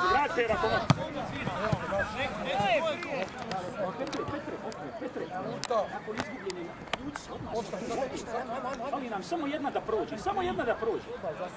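A crowd of spectators chatters and calls out across an open outdoor field.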